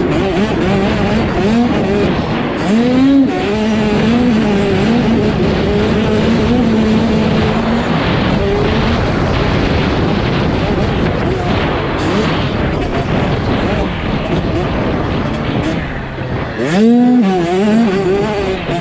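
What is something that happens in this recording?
A motorcycle engine revs up and down loudly close by.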